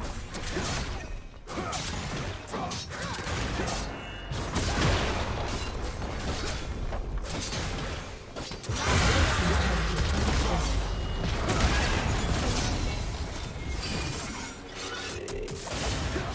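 Magic blasts and weapon hits clash in a busy video game battle.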